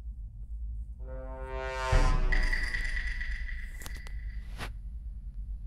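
A rising electronic musical sting plays loudly in a game.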